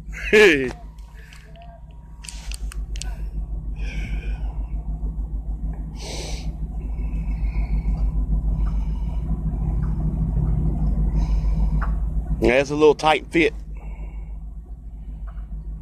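A car engine idles with a low, steady rumble nearby.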